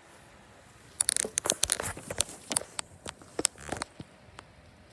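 Fingers knock and rub against the microphone.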